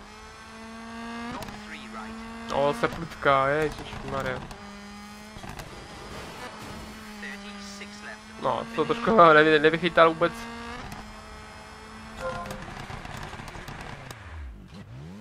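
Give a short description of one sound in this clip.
A car engine drones steadily, its pitch rising and falling with gear changes.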